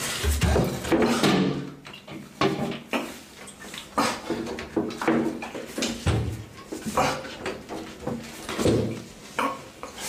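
A young man grunts and breathes heavily up close.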